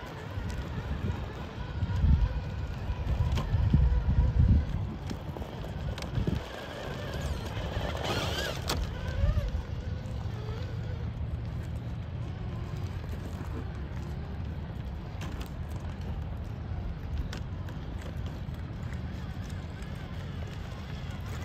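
Rubber tyres crunch and scrape over loose rocks.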